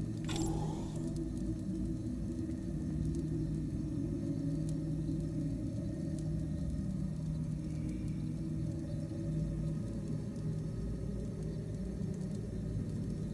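A magical flame roars with a low, steady hum.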